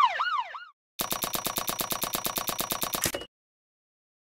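Coins tally up with fast, even electronic ticks.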